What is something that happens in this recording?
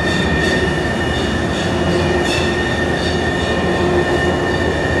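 Heavy machinery hums and whirs steadily in a large echoing hall.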